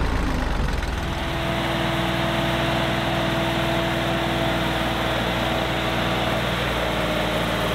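A tractor's diesel engine idles at a distance outdoors.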